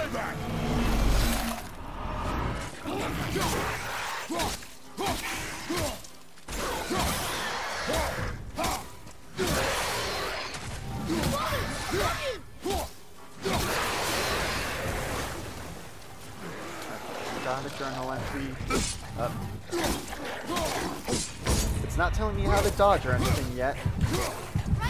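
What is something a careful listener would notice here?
Heavy weapon blows thud and clang during a fight.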